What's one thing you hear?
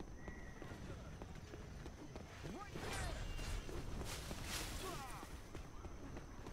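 Footsteps run quickly over dirt and stone.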